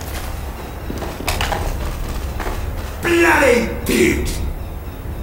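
Footsteps thud on dirt in quick succession.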